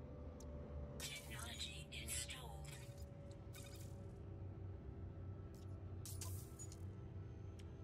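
A rising electronic whoosh sounds as a part is installed.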